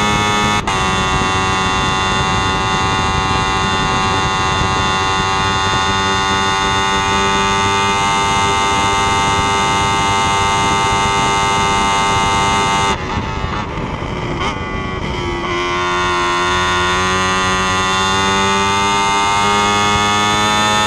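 A racing car engine screams at high revs close by, dropping as the driver shifts and brakes before climbing again.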